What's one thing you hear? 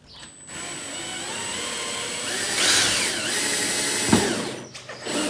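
A cordless drill whirs at high speed, its pitch rising and falling.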